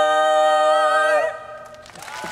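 A group of women sing a loud held chord in close harmony.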